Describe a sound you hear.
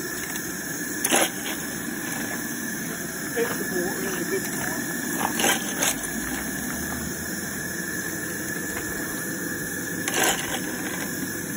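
A small shovel scrapes and clinks through lumps of coal.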